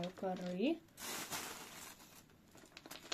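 A hand rustles through a plastic bag of dry bark chips.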